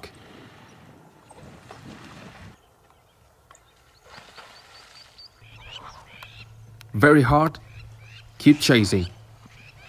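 An antelope splashes through shallow water.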